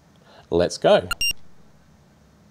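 A handheld game console beeps briefly.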